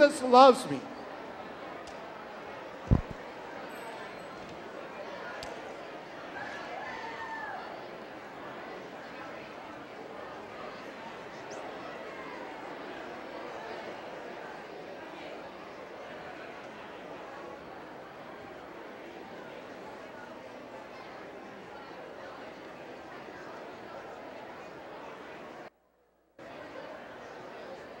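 A crowd of people chatter and murmur all around.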